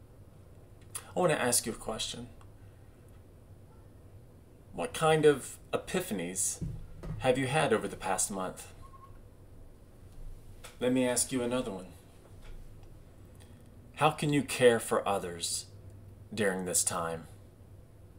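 A middle-aged man speaks calmly in short phrases, close to the microphone.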